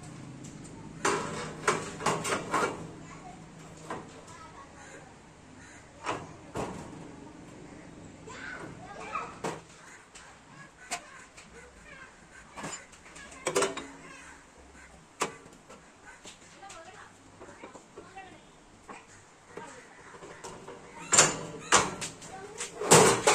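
Metal parts clank and knock as a hand-operated press is worked.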